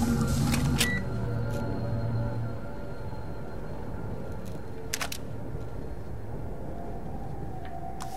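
Footsteps pad softly across a floor.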